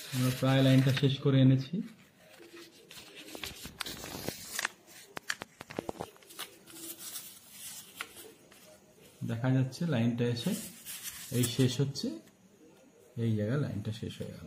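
A pen taps and scratches on paper.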